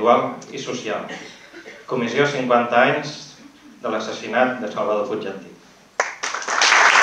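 A man speaks into a microphone over loudspeakers in a large hall, reading out calmly.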